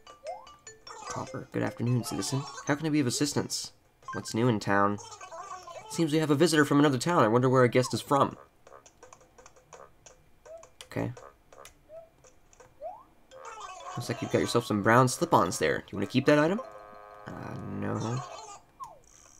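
A handheld game console plays a cartoon character's rapid chattering babble through a small speaker.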